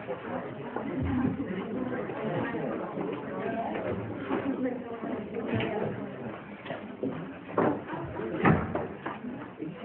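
Pens scratch on paper in a quiet room.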